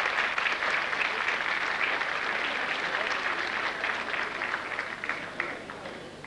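An audience applauds warmly, the clapping slowly fading.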